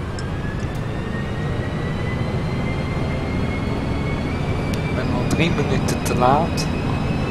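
A bus engine hums steadily with a low rumble.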